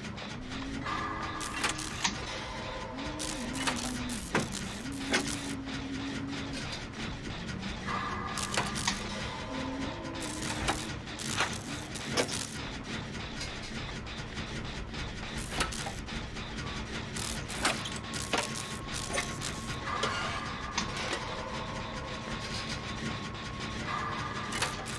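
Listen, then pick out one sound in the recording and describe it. A generator rattles and clanks steadily as it is repaired.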